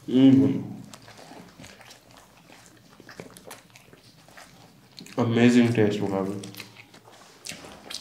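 A young man hums with pleasure while eating.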